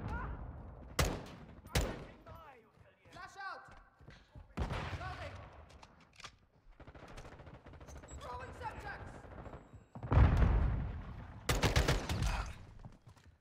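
Gunshots fire in short, rapid bursts.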